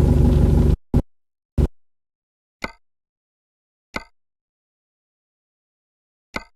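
Menu buttons click sharply a few times.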